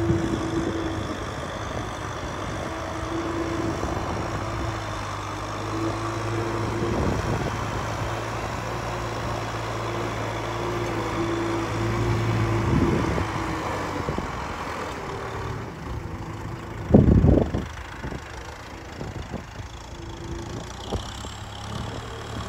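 A tractor engine rumbles steadily nearby.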